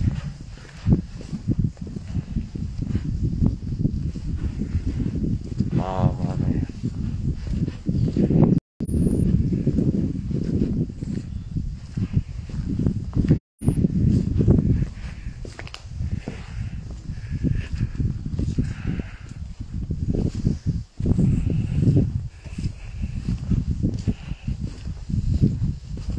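Wind buffets the microphone outdoors in strong gusts.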